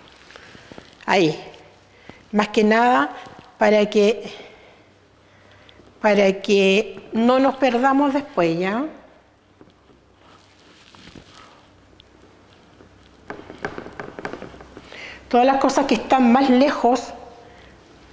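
An older woman speaks calmly and clearly, close by.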